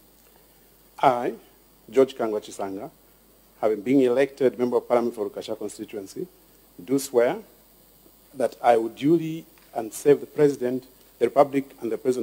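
A man reads out slowly and solemnly into a microphone in a large hall.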